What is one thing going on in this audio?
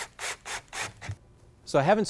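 A cordless drill whirs as it drives a screw.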